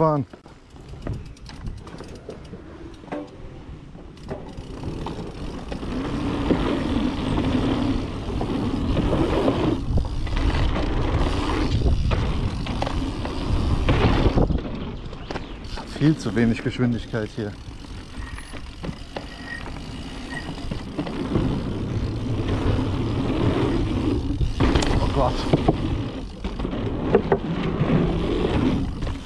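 Wind rushes past a fast-moving rider.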